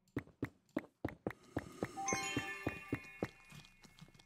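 Blocks crack and break in quick succession.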